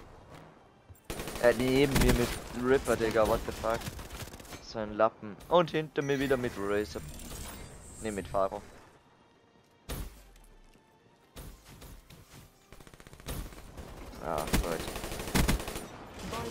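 Gunfire crackles in rapid bursts.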